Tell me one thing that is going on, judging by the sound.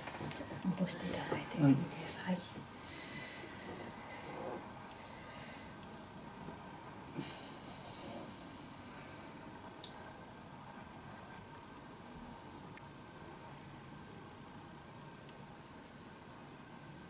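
A towel rubs softly against a face.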